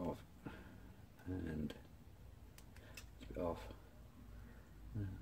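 Hard plastic parts click and rattle softly as hands handle them.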